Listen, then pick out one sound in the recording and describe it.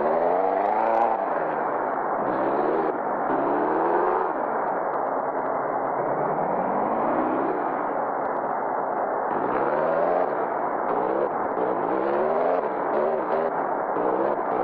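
A car engine revs up and down repeatedly as the car drives slowly.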